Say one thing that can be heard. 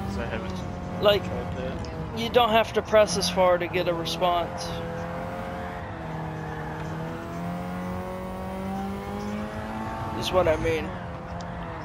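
Car tyres squeal sharply in short bursts through the corners.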